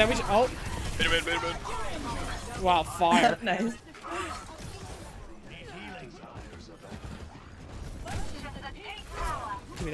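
Gunfire and game effects crackle from a video game.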